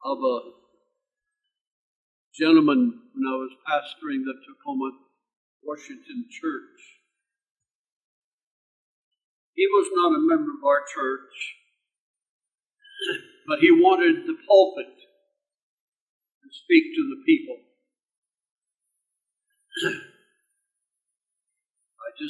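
An elderly man speaks slowly and deliberately into a microphone, pausing between phrases.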